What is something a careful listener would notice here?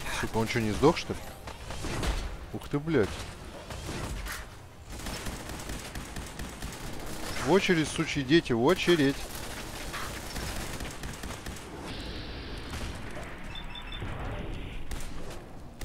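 Explosions boom and crackle with fire.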